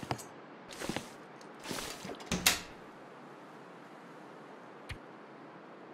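A soft click sounds as a menu item is selected.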